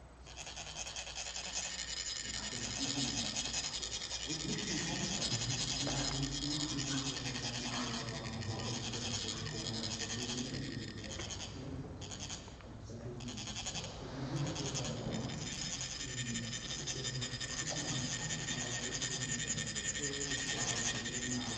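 Metal funnels are rubbed together with a steady, high rasping scrape.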